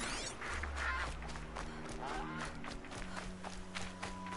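Footsteps run along a dirt path.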